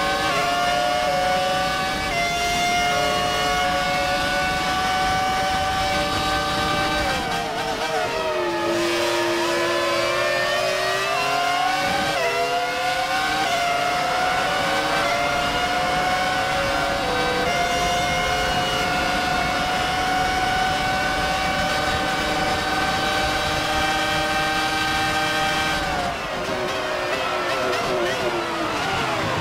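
A racing car engine screams at high revs, dropping in pitch with each gear change and as it slows for corners.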